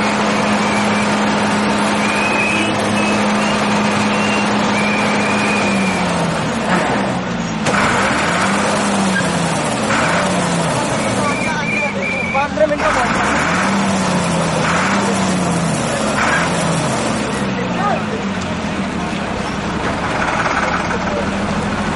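A crane engine hums steadily, then revs up and down.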